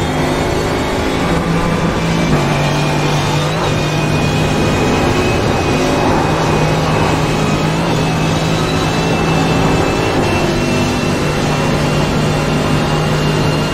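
A racing car engine roars at high speed, shifting up through the gears.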